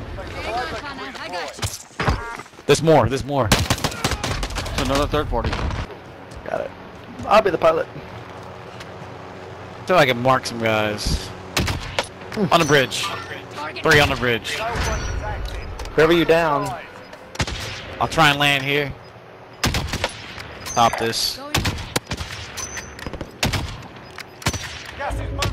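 Gunshots crack sharply several times.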